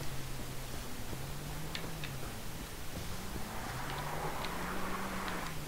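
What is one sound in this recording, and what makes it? Tall grass and leaves rustle as someone pushes through them.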